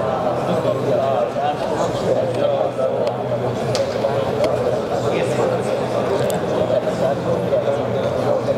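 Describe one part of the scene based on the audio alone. A man speaks steadily into a headset microphone, heard through loudspeakers in a large echoing hall.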